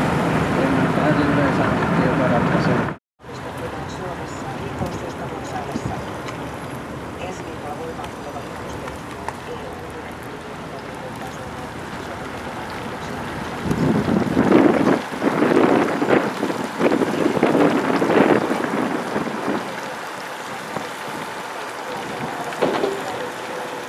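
Tyres roll on a wet road.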